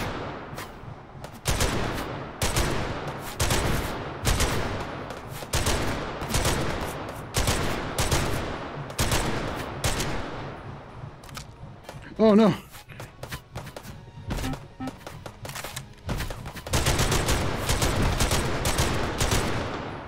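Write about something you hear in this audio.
A machine gun fires in loud, rapid bursts that echo.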